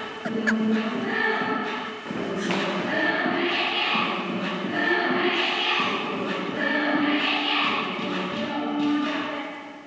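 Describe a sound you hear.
Children's feet shuffle and tap on a wooden floor.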